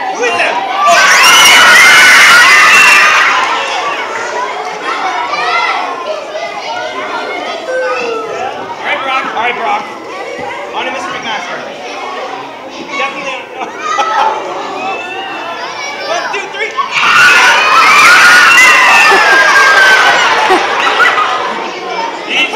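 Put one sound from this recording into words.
Children scream and laugh loudly in a large echoing hall.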